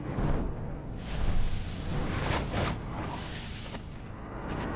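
A fireball whooshes past.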